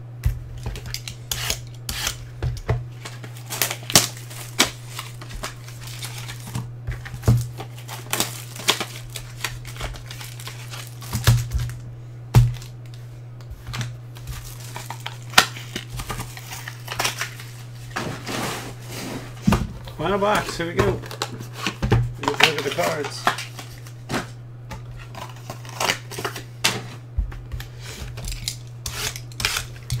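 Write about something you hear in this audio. Card packs rustle and crinkle as hands handle them.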